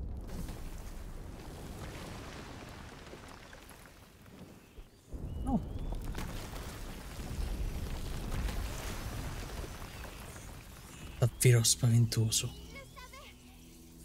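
A fire crackles and flares up.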